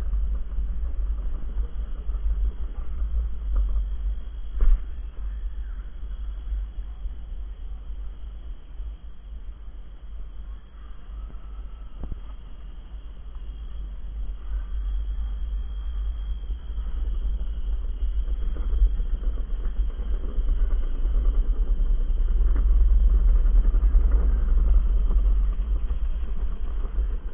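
Wind rumbles heavily against a microphone outdoors.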